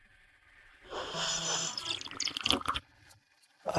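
A young man slurps a drink through a straw.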